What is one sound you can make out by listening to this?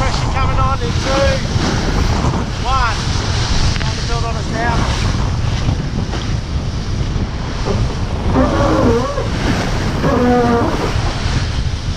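Men talk casually nearby over the wind.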